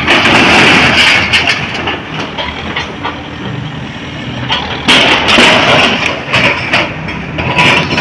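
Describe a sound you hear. Debris crashes and clatters as a wall is torn down.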